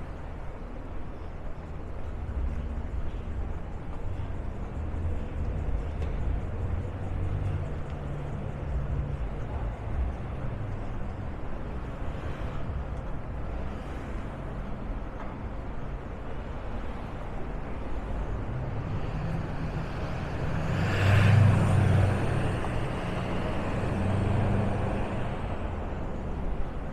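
City traffic hums steadily nearby.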